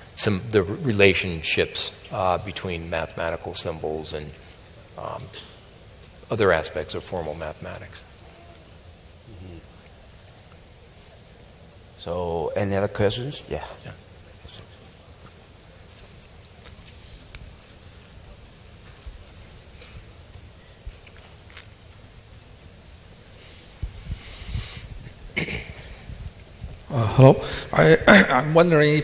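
A man speaks calmly into a microphone in a large hall, with pauses between phrases.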